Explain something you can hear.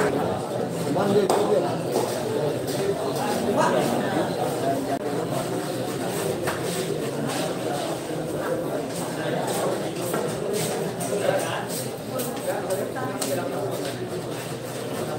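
A crowd of young men chatters nearby.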